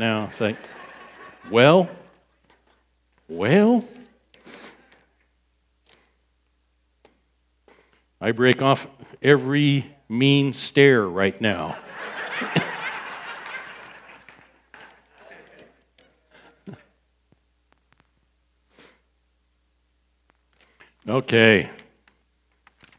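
An older man speaks with animation through a headset microphone, with pauses.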